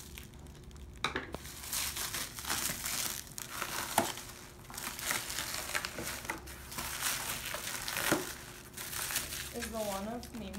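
Plastic wrap crinkles and rustles as it is pulled off.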